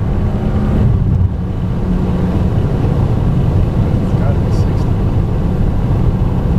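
A car engine roars steadily as the car speeds along a road.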